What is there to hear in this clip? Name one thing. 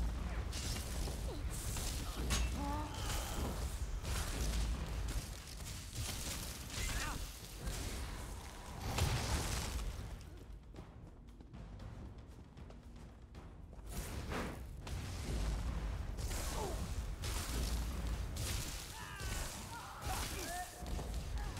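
Swords clash.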